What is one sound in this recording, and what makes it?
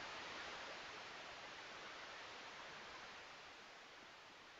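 Wind rushes softly during a descent and slowly fades.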